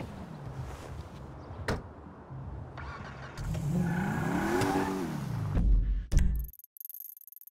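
A car drives off with its engine humming.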